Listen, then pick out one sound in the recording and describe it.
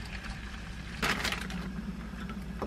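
Water pours into a glass cup.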